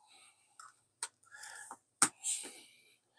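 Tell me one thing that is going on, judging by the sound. A cable plug clicks into a port.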